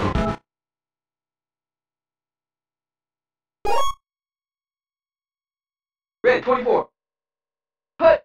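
Short electronic video game sound effects play in brief bursts.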